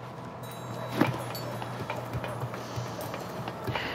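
A metal ladder clanks as a climber goes up its rungs.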